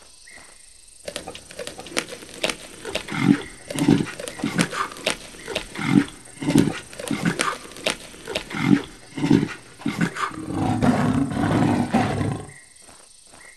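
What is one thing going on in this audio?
A lion chews and tears at meat with loud, wet crunching bites.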